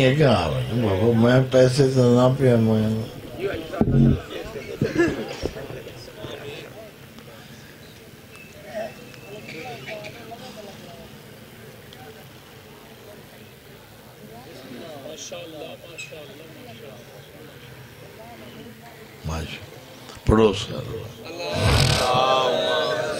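A man chants loudly into a microphone, heard through a loudspeaker in a reverberant space.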